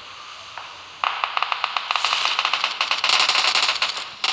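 A parachute flaps and rattles loudly in the wind.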